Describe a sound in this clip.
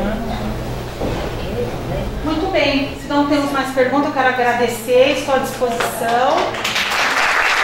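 A woman speaks with animation to a group in a room.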